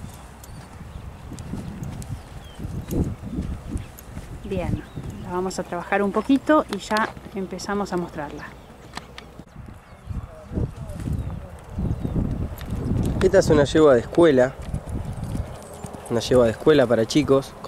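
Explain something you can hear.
A horse's hooves thud on soft dirt.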